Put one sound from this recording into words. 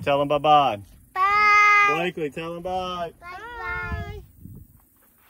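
A young girl talks excitedly close by.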